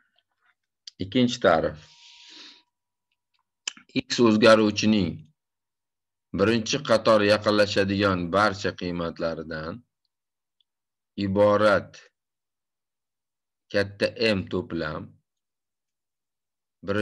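A young man lectures calmly through a microphone in an online call, speaking in short bursts with pauses.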